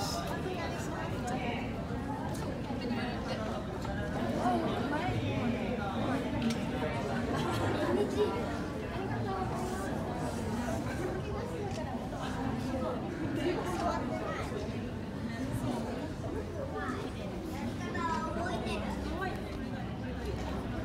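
A crowd of men and women chats quietly nearby, in a room with a slight echo.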